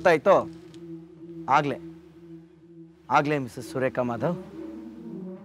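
A man speaks close by with animation, in short bursts.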